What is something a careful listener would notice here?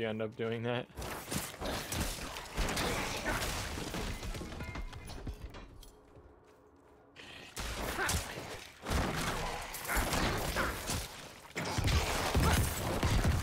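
Game combat sounds clash and crackle loudly.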